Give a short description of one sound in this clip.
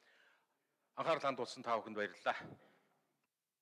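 A man speaks formally into a microphone in a large echoing hall.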